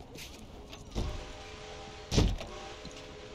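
A fist knocks hard on a wooden door.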